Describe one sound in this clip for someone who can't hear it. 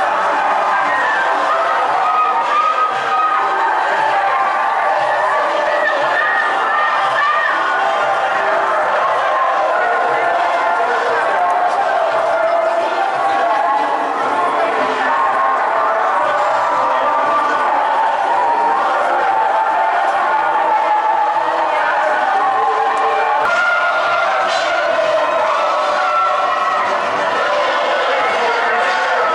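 A large crowd of marchers chants and cheers outdoors.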